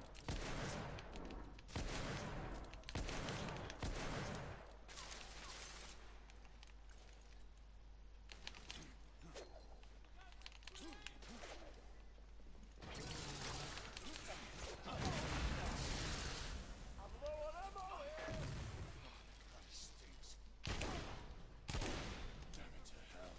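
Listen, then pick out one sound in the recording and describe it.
Gunshots boom and echo loudly.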